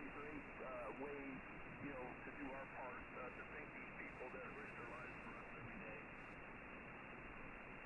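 Static hisses steadily from a radio.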